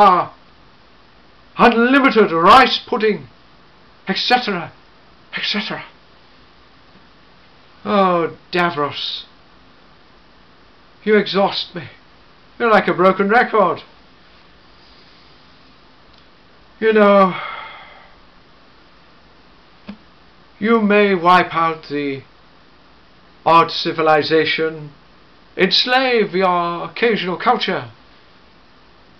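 A middle-aged man speaks expressively in short bursts, close by.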